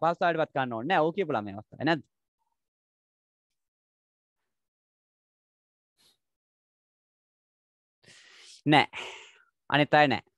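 A young man speaks clearly and calmly, close by.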